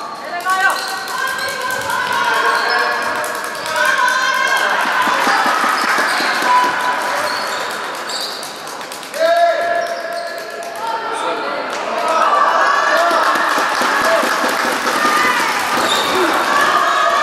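Young girls shout to each other across the court.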